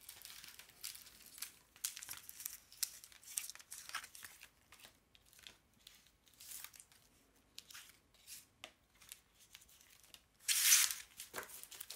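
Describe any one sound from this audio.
Cards slide and tap softly on a wooden table.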